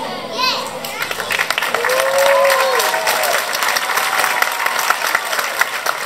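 A crowd of children claps and cheers.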